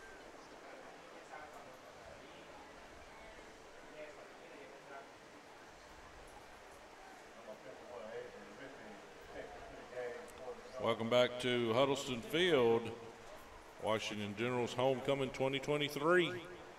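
A crowd murmurs faintly in distant stands outdoors.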